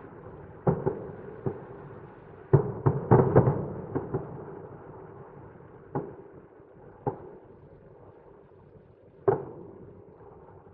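Fireworks boom and crackle in the distance, echoing across the open air.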